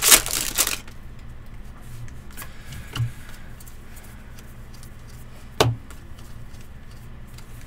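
Trading cards shuffle and flick against each other.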